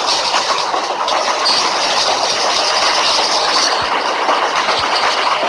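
Train wheels clatter over rails.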